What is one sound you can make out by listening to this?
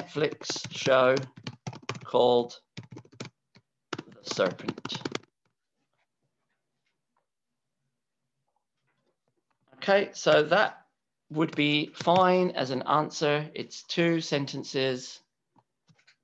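A man speaks calmly into a microphone, as if on an online call.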